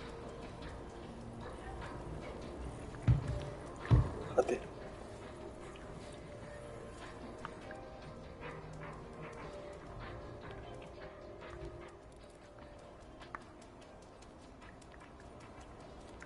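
A cat's paws patter softly on concrete.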